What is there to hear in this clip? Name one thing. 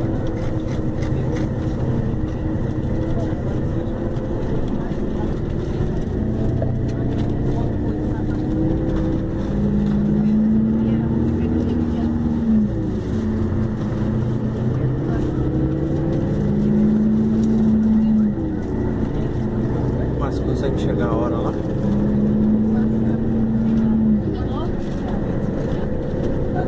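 A car engine drones steadily, its pitch rising and then dropping with each gear change.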